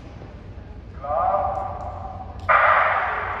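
A man calls out a loud command in a large echoing hall.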